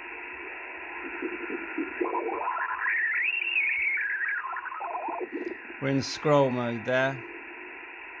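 A radio signal warbles and whistles up and down in pitch as the dial is turned.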